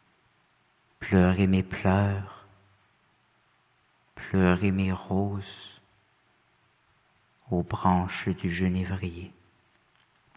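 A young man recites slowly and expressively into a microphone, with pauses between phrases.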